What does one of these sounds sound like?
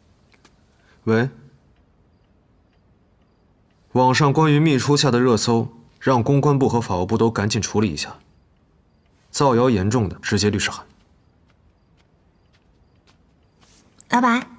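A young man speaks into a phone in a calm, low voice.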